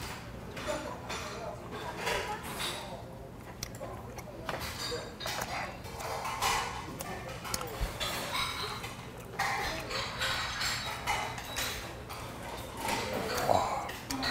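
A man chews and smacks his lips while eating.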